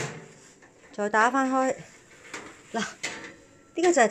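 An oven door swings open with a soft creak.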